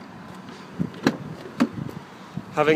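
A car door latch clicks as the door opens.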